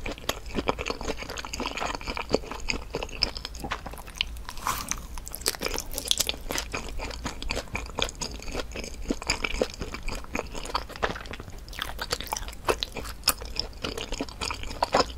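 A woman chews crunchy fried snacks close to the microphone.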